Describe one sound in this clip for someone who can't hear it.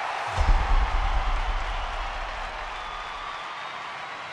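A rock band strikes a loud final chord that rings out and fades.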